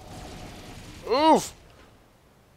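A weapon fires a short, zapping blast.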